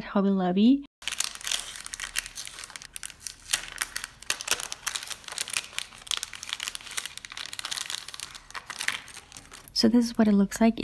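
Plastic packaging crinkles and rustles as hands tear it open.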